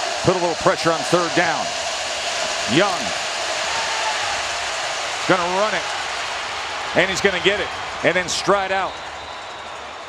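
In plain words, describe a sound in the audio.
A large crowd roars and cheers in a stadium.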